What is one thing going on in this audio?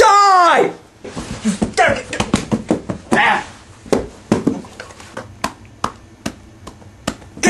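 Padded gloves thump against a body and the floor in rapid blows.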